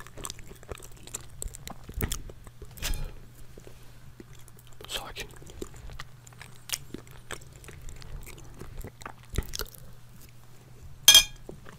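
A fork scrapes and clicks on a plate.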